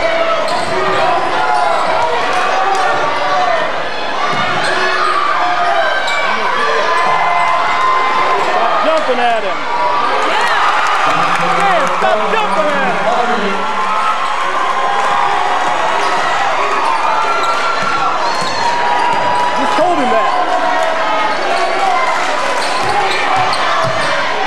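A crowd murmurs and cheers in the stands.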